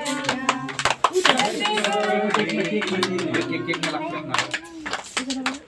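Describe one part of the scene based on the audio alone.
A group of children and women sing together.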